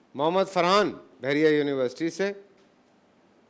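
A man chants in a drawn-out, melodic voice.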